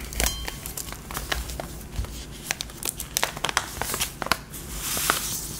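A plastic pouch crinkles and rustles as it is opened.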